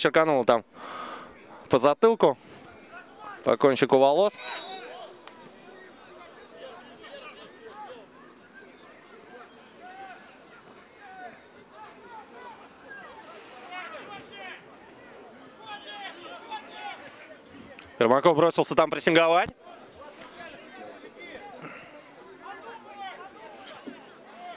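Young men shout to each other across an open sports field.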